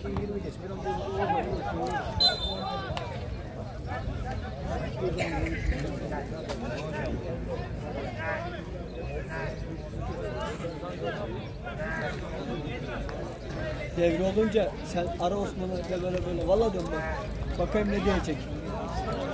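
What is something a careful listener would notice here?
Men shout and call out to each other across an open outdoor field.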